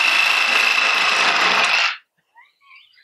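A reciprocating saw buzzes loudly as it cuts through a metal pipe.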